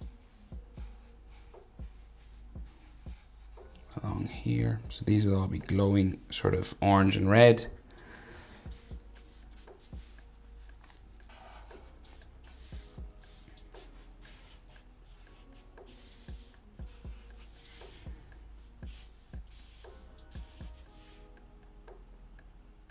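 A felt-tip marker scratches and squeaks softly on paper.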